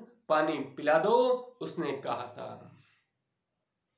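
A young man speaks clearly and calmly close by.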